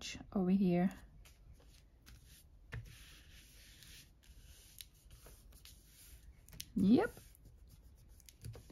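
Paper rustles softly as hands rub and smooth it flat.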